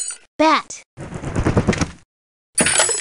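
Wooden crates break apart with a clattering crash.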